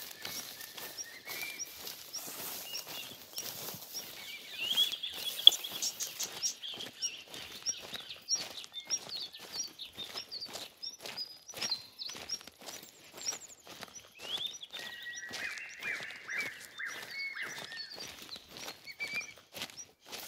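Footsteps rustle through leaves and undergrowth at a steady walking pace.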